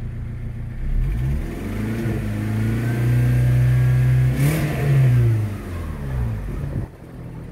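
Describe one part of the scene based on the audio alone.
A car engine revs up and settles back down.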